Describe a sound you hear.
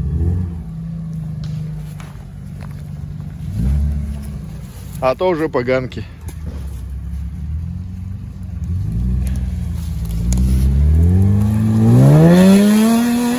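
An off-road vehicle's engine rumbles and revs hard as it climbs.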